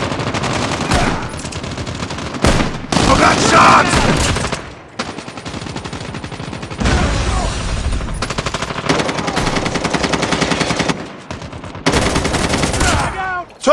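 A rifle fires bursts of gunshots.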